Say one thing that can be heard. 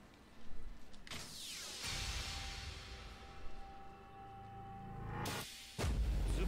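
A rushing whoosh sweeps past.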